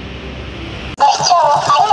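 A stuffed toy hamster chatters in a high, squeaky voice.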